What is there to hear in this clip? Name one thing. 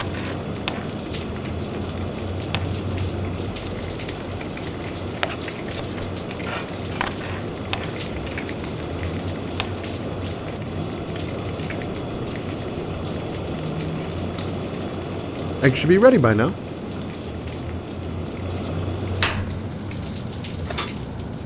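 Batter sizzles in a hot frying pan.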